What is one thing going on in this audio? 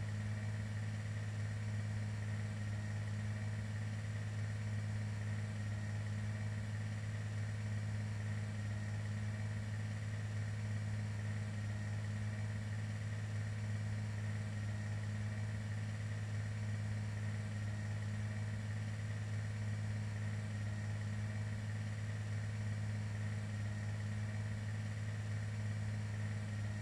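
A propeller plane's engines drone steadily and closely.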